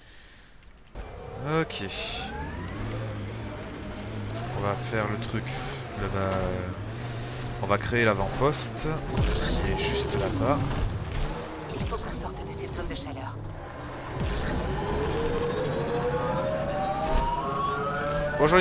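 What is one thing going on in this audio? A vehicle engine hums and revs up.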